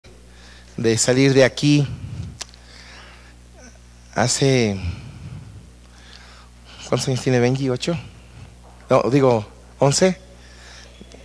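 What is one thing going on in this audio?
A man speaks through a microphone in short phrases with pauses, in a room with an echo.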